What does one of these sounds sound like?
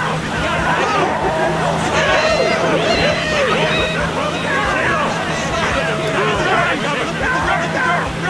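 Small kart engines hum steadily as they race.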